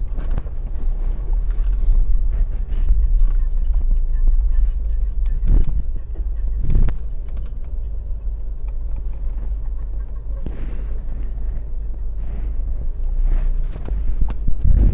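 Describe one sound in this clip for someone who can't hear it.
A car engine rumbles low and steady from inside the car as it rolls slowly.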